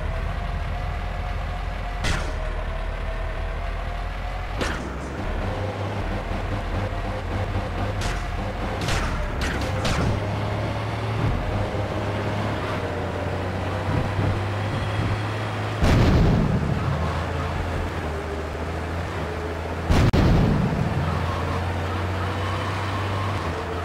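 A tank engine rumbles low as the tank drives.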